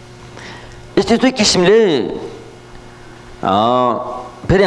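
A man chants in a deep, steady voice through a microphone.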